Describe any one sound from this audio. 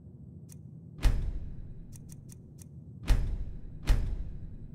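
Menu clicks sound sharply a few times.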